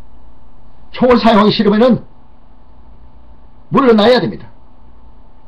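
A middle-aged man speaks animatedly into a microphone, close by, in short bursts.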